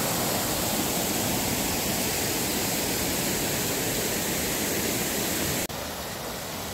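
A shallow stream flows and ripples steadily.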